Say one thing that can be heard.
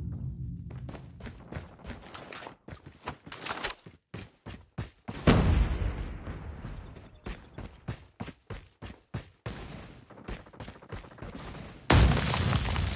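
Footsteps run quickly over dirt and wooden floors.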